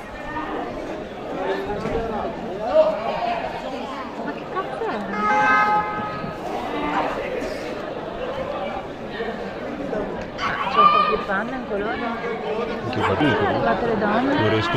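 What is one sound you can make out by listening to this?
Several men shout and talk at a distance.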